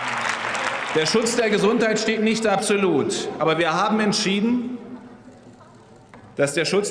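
A man speaks formally into a microphone in a large hall.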